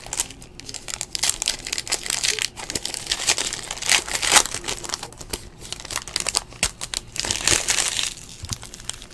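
A foil wrapper crinkles and tears as hands open a pack of cards.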